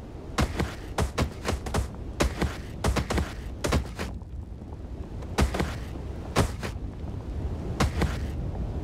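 A limp body thuds repeatedly as it tumbles down a hard roof.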